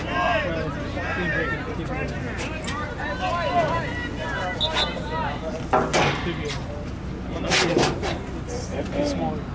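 Young players shout and call to each other across an open field.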